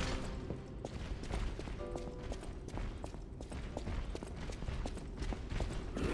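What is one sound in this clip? Footsteps run quickly across a hard stone floor.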